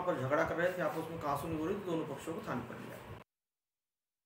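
A middle-aged man speaks calmly and firmly into a microphone, close by.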